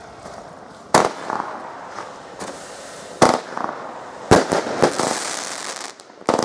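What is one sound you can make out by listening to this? A fireworks cake fires shots that burst with sharp bangs.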